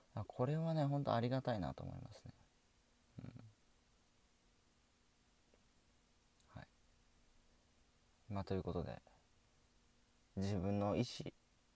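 A young man speaks calmly and slowly in short bursts, close to a microphone.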